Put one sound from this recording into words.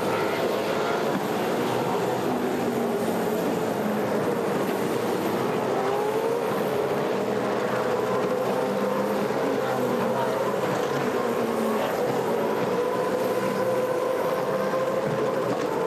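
Racing car engines drone steadily, rising and falling in pitch.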